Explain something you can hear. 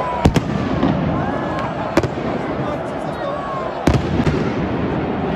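Firecrackers bang loudly in a stadium.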